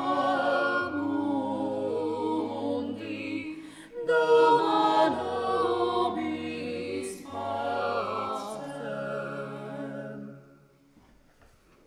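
A man sings a slow chant through a microphone in a large echoing hall.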